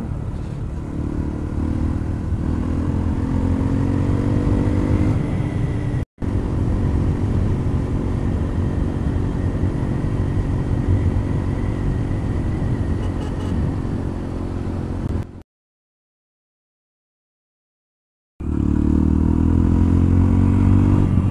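A motorcycle engine hums and revs steadily while riding.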